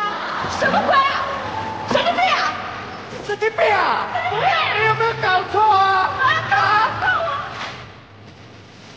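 A young woman shouts with animation close by.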